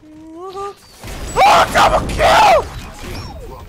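A heavy hammer smashes down with a loud crash.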